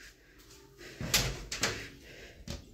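A metal door latch clicks as a door opens.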